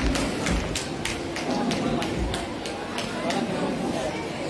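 Feet stamp rhythmically on a wooden stage.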